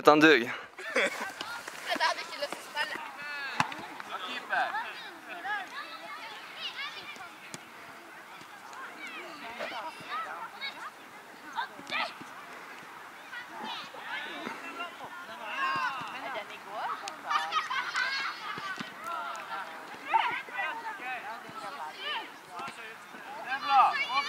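Children shout and call out in the distance while playing outdoors.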